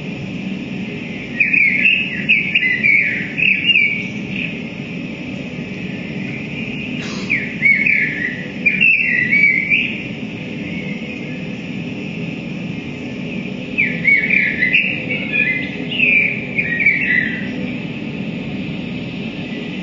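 A low electronic drone hums steadily through amplifiers.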